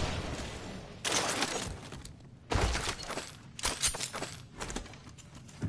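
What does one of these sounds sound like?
Footsteps thud and clatter on a hard floor.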